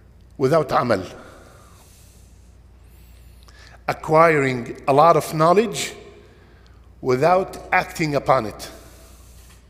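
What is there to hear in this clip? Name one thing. An elderly man speaks calmly and deliberately in short bursts with pauses.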